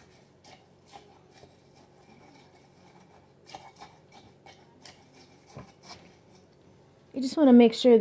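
A wooden stick clinks and stirs against a glass jar.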